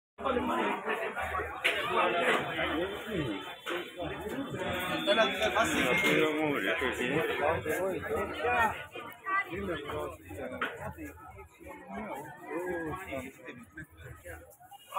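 A crowd of men and women chatter close by.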